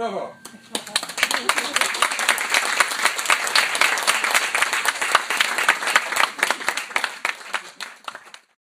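An audience claps loudly.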